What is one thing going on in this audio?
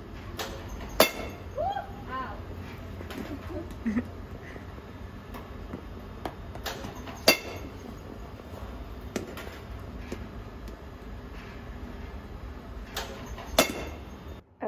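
A metal bat sharply cracks against a baseball.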